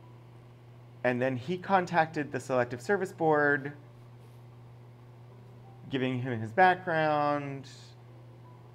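An adult speaks with animation into a close microphone, pausing between phrases.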